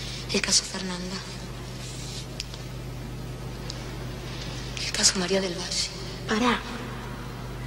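A teenage girl speaks quietly and tensely nearby.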